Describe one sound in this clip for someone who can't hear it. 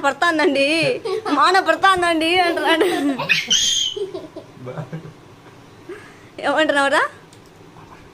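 Young girls laugh and squeal playfully up close.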